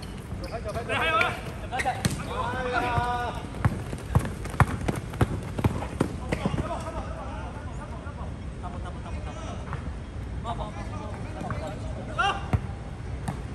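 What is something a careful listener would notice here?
Sneakers squeak on a court.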